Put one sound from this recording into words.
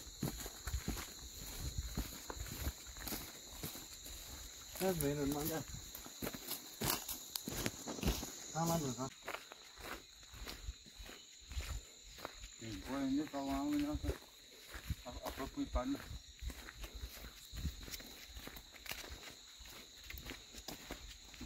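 Footsteps crunch on a gravel track.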